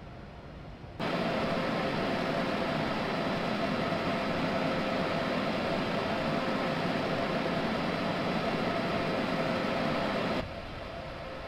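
A train's motor hums loudly from close by.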